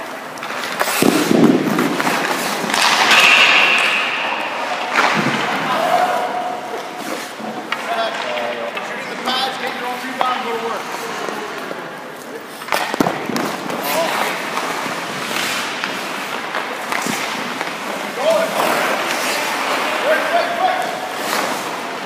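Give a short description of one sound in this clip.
Skate blades scrape and hiss across the ice.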